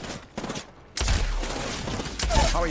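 Rapid gunshots fire close by.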